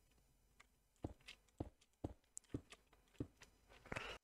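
Stone blocks are placed with soft thuds in a video game.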